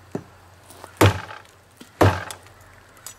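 A knife chops into a tree trunk with sharp thuds.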